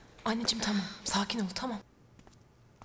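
A woman speaks with worry, close by.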